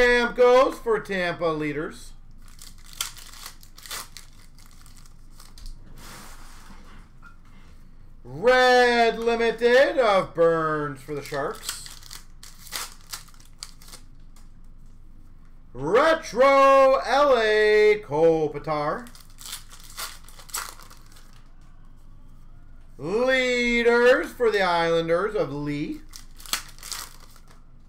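Cards in plastic sleeves rustle and click as they are handled.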